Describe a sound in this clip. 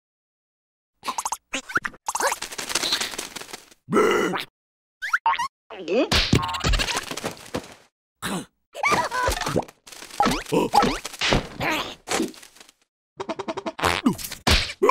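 A high, squeaky cartoon voice babbles and laughs with excitement.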